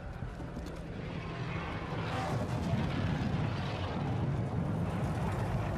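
A dropship's engines rumble and roar louder as it hovers overhead.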